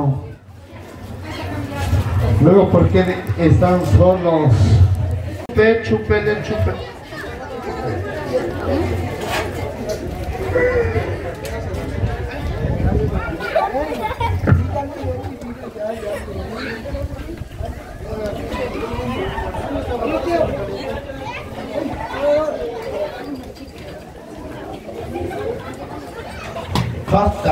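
A man speaks with animation into a microphone, heard through a loudspeaker outdoors.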